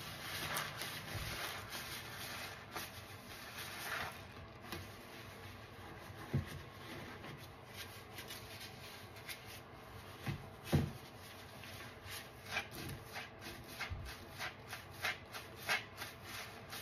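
Wet sponges squelch and squish as hands squeeze them in soapy foam.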